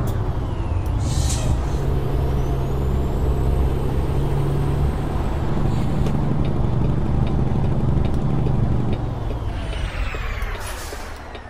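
Tyres roll on the road with a steady rumble.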